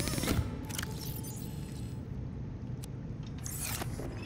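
A short electronic chime sounds as a battery snaps into a charger.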